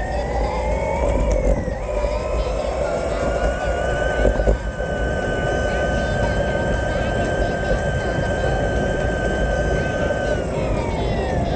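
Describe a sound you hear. An electric scooter motor whines, rising and falling in pitch with speed.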